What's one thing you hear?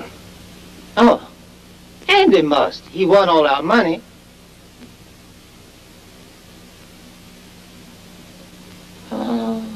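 An elderly man speaks loudly with animation.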